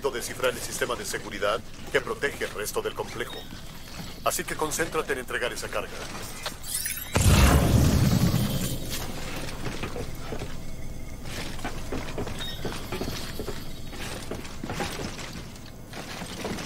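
Heavy footsteps walk across a hard floor.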